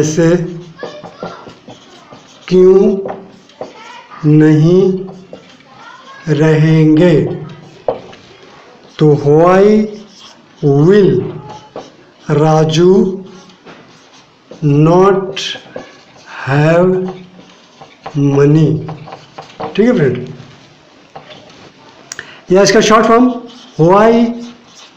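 A young man speaks clearly and slowly, close by.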